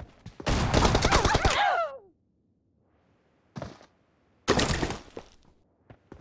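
Rapid gunfire rings out in loud bursts.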